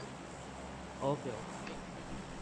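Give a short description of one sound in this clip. A young man says a short word close to a microphone.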